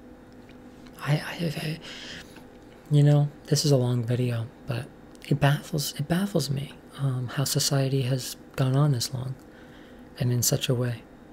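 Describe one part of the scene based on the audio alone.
A young woman talks casually and close to a microphone.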